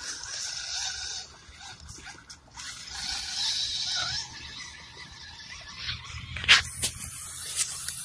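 Tyres of a toy car splash through shallow muddy water.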